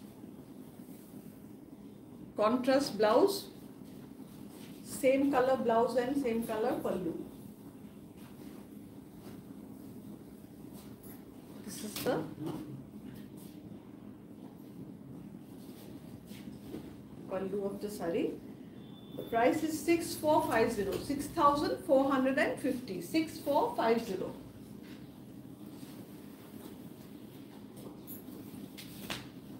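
Fabric rustles as it is unfolded and draped.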